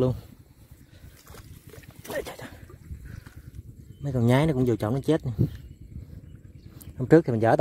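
A net swishes and splashes through shallow water.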